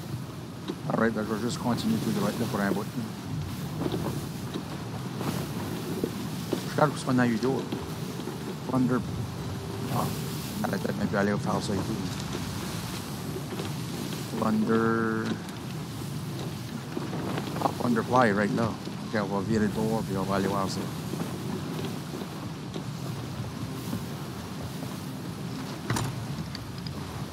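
Rough waves crash and roll against a wooden ship.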